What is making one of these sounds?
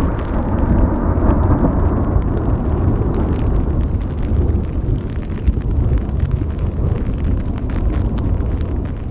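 Wind buffets a nylon tent.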